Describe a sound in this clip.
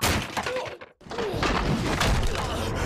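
A man falls heavily onto sacks with a dull thud.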